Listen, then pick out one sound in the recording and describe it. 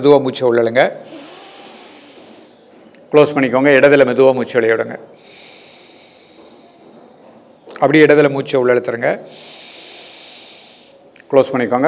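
A woman breathes slowly and deeply through her nose.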